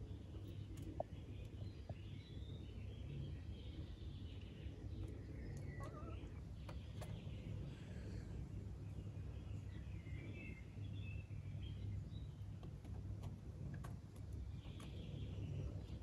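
A young goat's hooves tap on stone.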